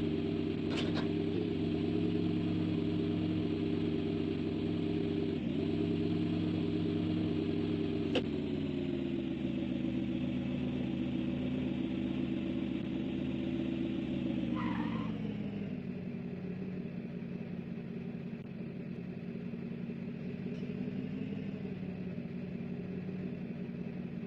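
A vehicle engine hums steadily, then drops to a lower idle.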